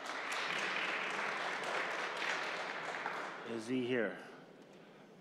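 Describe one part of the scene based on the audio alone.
A large crowd applauds and cheers in an echoing hall.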